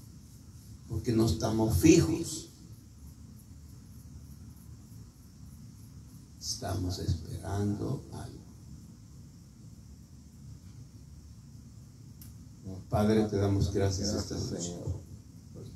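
A man speaks through a microphone and loudspeaker in short bursts, with pauses between.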